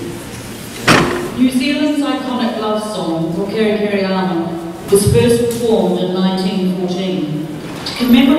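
A woman sings in a large hall.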